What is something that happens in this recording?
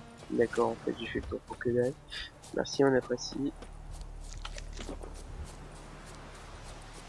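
Footsteps rustle through grass and bushes.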